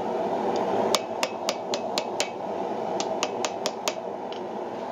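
A hammer rings sharply on hot metal on an anvil in quick strikes.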